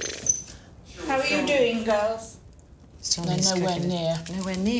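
An older woman talks calmly nearby.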